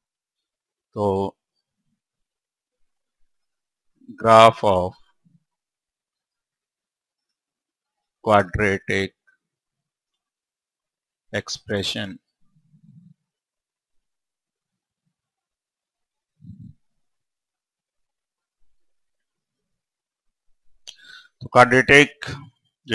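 A man speaks calmly through a clip-on microphone, in short bursts with pauses.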